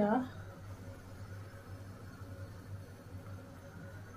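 Oil trickles into a pan.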